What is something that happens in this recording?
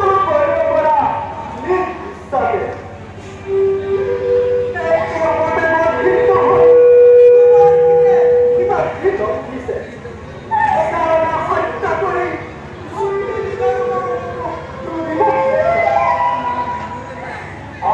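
A man declaims loudly and dramatically through a loudspeaker in an echoing hall.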